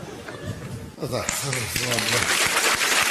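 An audience laughs and applauds.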